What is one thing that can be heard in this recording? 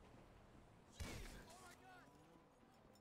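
A gunshot cracks sharply and echoes.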